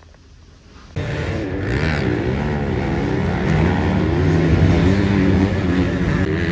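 Dirt bike engines roar and rev loudly outdoors.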